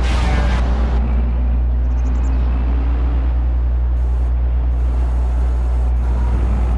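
A heavy diesel engine rumbles steadily.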